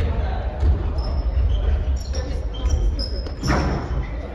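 Sneakers squeak on a wooden gym floor in a large echoing hall.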